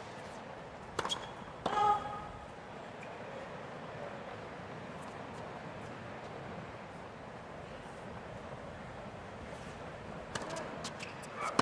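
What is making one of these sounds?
A tennis ball is hit hard with a racket.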